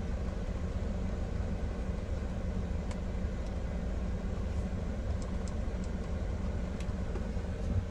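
A switch clicks softly a few times.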